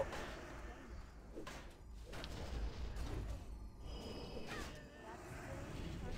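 Magic spells whoosh and crackle during a fight.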